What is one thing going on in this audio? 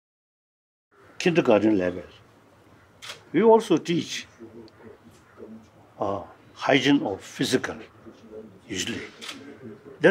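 An elderly man speaks calmly and slowly nearby.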